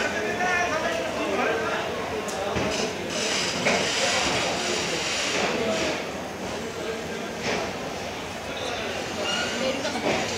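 A train rolls slowly past, its wheels rumbling and clattering.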